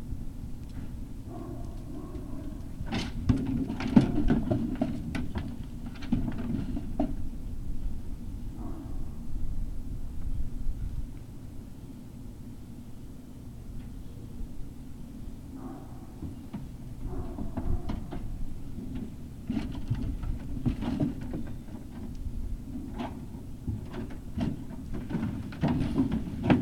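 Puppies yelp and growl playfully up close.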